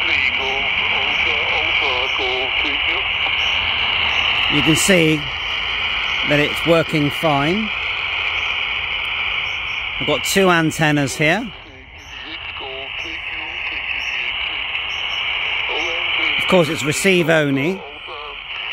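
A man's voice comes through a small radio speaker in short bursts.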